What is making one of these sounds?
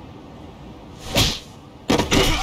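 A man is punched hard.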